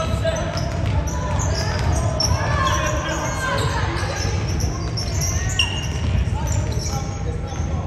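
Voices of players and spectators echo in a large hall.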